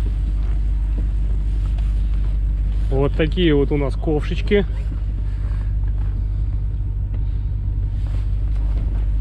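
Wind rumbles steadily across the microphone.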